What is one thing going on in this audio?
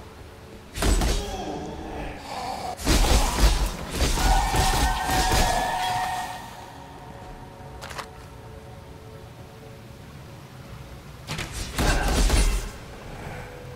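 Spells burst and crackle in a fight.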